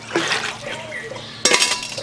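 A stone roller knocks against a stone slab.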